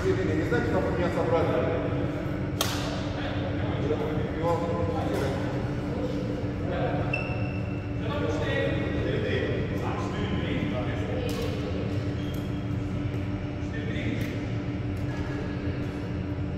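Shuttlecocks are struck with rackets in a large echoing hall.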